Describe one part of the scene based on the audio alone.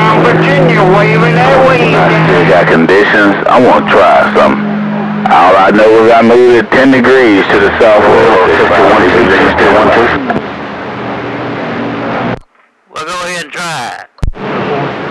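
Warbling, wavering radio signals squeal loudly from a receiver's loudspeaker.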